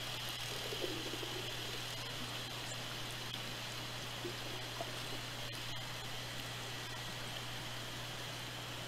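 Water rushes and hisses steadily underwater.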